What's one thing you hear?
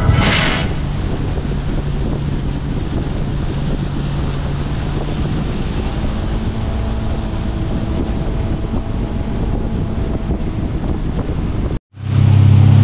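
A boat motor hums steadily while cruising.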